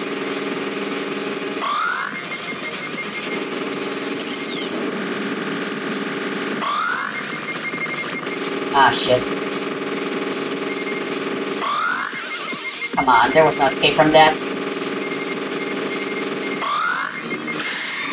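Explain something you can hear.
Upbeat electronic game music plays steadily.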